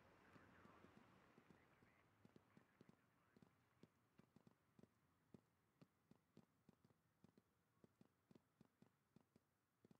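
Footsteps walk at a steady pace on a hard floor.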